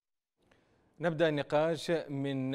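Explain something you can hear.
A man speaks clearly and steadily into a microphone.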